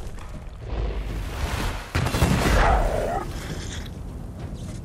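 A fiery explosion booms and roars.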